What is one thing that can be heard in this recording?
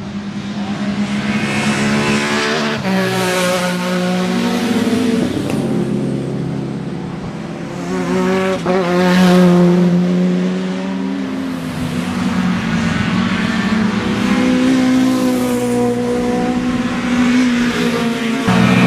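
Racing car engines roar loudly as cars speed past one after another, revving and shifting gears.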